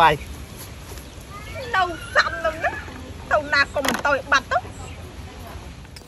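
A young woman speaks animatedly close by.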